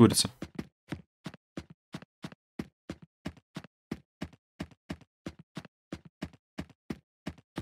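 Footsteps thud quickly and evenly on wooden boards.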